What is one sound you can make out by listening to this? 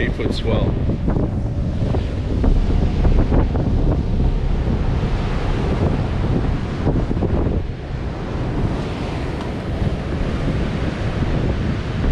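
Waves crash and roll onto the beach.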